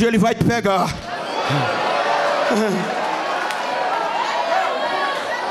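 A crowd cheers and shouts in response.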